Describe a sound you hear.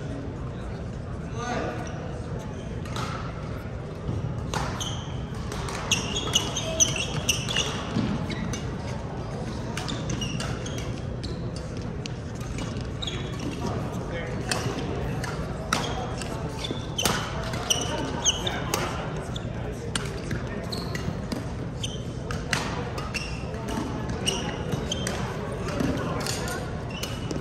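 The sound echoes around a large hall.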